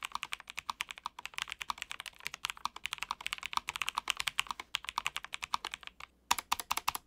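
Mechanical keyboard keys clatter quickly as someone types.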